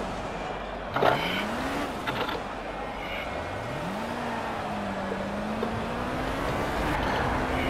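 An open-wheel race car engine revs up as the car pulls away again.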